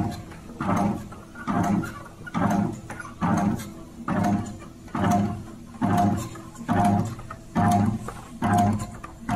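A cutting machine whirs and thumps in a steady, repeating rhythm, about once a second.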